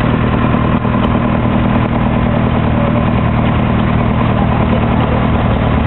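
A vehicle engine hums steadily from inside the cab.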